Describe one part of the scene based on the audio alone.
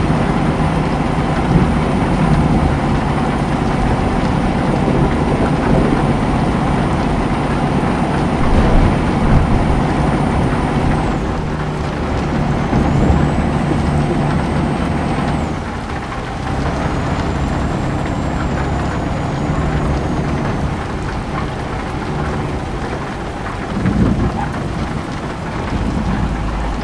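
A truck engine hums steadily inside the cab.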